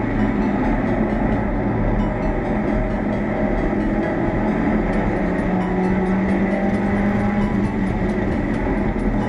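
A race car engine roars loudly from inside the cockpit.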